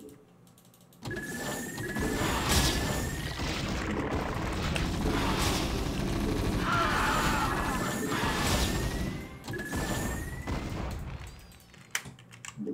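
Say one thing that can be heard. Rapid gunfire and explosions crackle from a video game battle.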